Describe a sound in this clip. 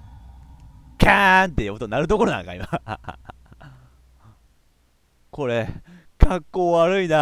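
A young man speaks in a low voice, close by.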